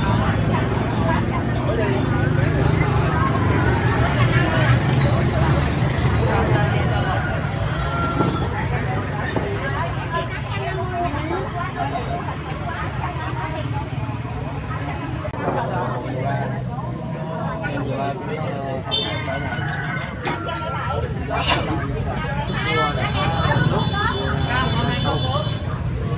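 A busy crowd of men and women chatters close by outdoors.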